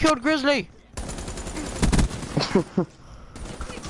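Rapid gunfire bursts out in a game.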